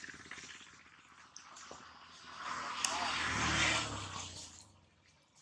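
A baby monkey suckles with soft wet smacking sounds.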